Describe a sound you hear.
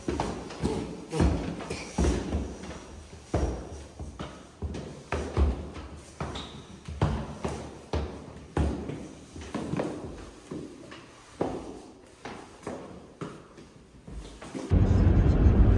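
Footsteps tap down stairs.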